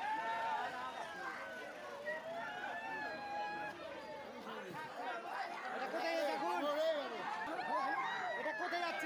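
A crowd of men and women shout over each other in a tight scuffle, close by.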